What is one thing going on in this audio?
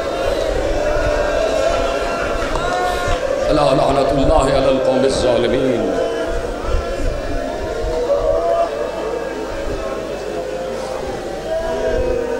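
A man recites loudly in a chanting voice through a loudspeaker, echoing in a large hall.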